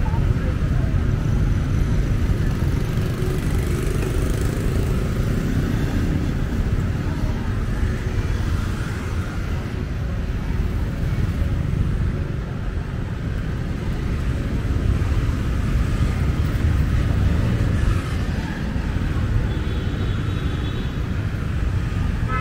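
Motorbikes and cars drive past on a street.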